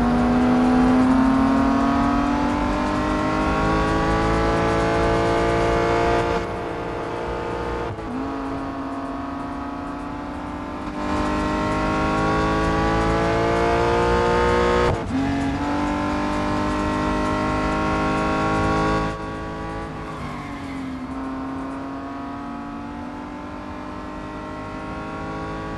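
A racing car engine roars at high revs, its pitch climbing steadily as it speeds up and dropping at each gear change.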